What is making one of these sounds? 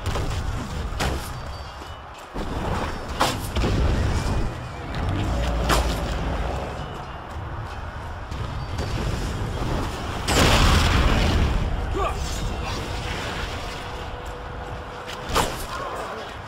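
Arrows whoosh and strike in quick sharp bursts.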